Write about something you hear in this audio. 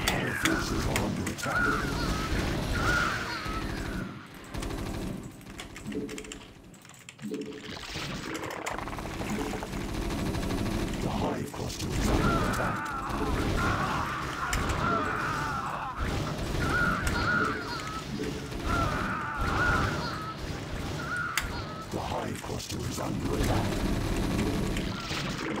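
Electronic game sound effects chirp and thump.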